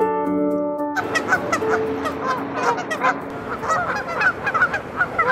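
Geese honk and call near the water.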